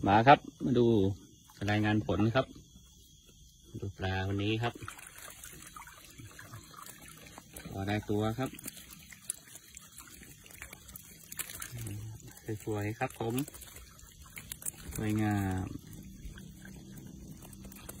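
Water splashes and drips as a trap is lifted from the water.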